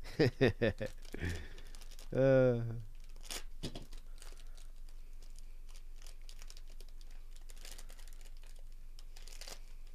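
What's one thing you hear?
A foil wrapper crinkles close by.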